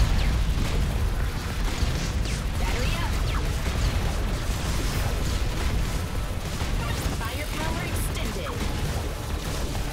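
Rapid electronic gunfire and laser blasts crackle throughout.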